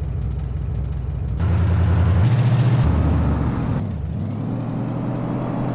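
A heavy truck engine rumbles and revs.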